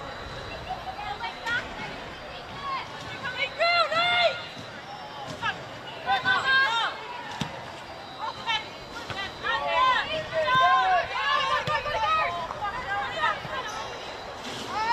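Young women shout to each other across an outdoor pitch.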